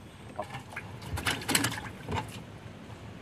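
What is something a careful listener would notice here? A fish flaps and thumps against a wooden boat floor.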